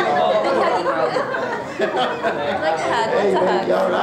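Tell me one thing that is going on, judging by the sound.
A woman laughs nearby.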